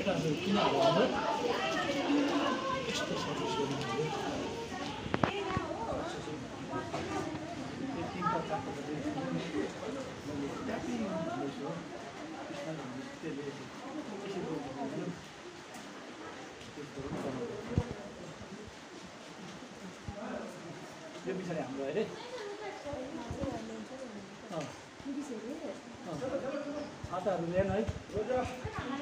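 Young girls chatter and call out nearby, outdoors.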